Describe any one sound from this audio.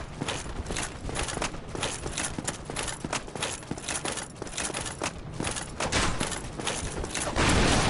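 Armored footsteps clank rapidly on stone.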